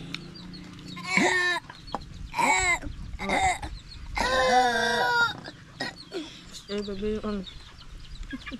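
A young boy speaks loudly and excitedly close by.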